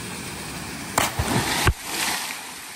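A man splashes into a pool.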